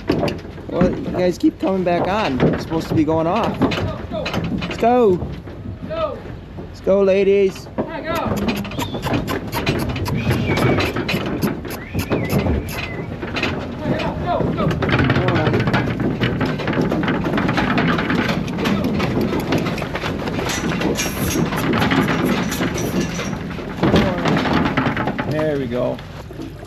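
Cows moo close by.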